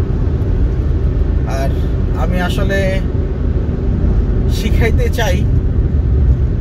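A car engine rumbles steadily from inside the car as it drives.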